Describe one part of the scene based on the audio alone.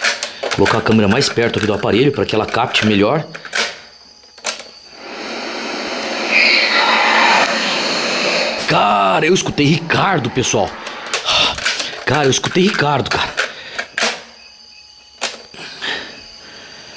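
Hard plastic clicks and clacks as a cassette is loaded into a tape recorder.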